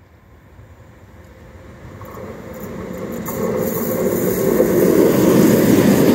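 A passenger train approaches along the rails, its rumble growing steadily louder.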